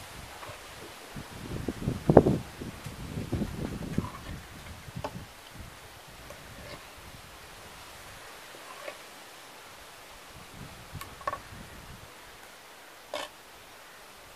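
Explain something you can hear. A metal spoon scrapes and clinks against a clay pot.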